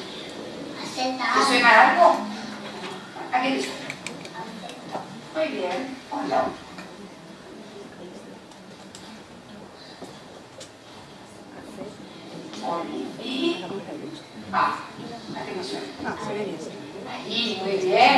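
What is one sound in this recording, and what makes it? A woman speaks calmly through a loudspeaker.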